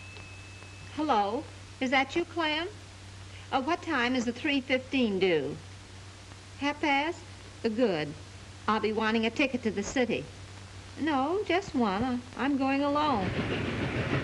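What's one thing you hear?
A woman speaks into a telephone with animation, heard close by.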